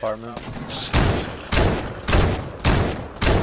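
Loud gunshots from a rifle crack in quick succession.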